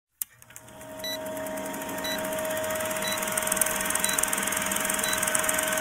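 A short high beep sounds once every second.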